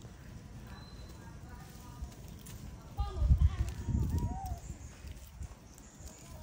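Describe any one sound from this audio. A monkey pads softly over dry leaves and stones.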